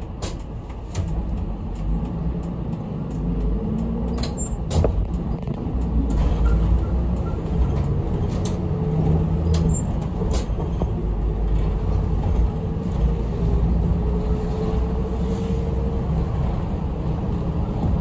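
A bus engine roars louder as the bus pulls away and drives down the street.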